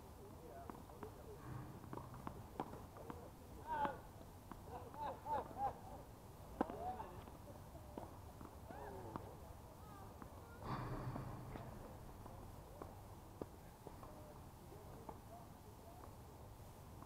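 Tennis balls are struck with rackets, giving sharp pops.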